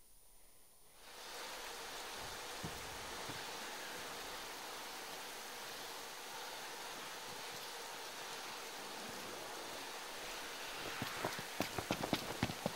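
Steady rain falls and patters on grass.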